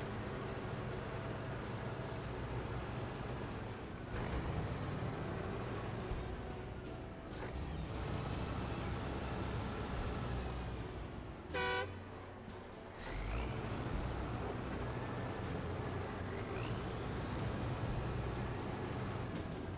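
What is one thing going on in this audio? A heavy vehicle engine rumbles steadily as it drives through snow.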